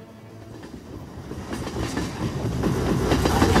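A train approaches with a rumble that grows louder.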